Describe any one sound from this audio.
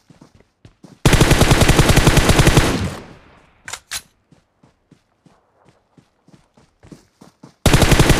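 A rifle fires rapid automatic bursts at close range.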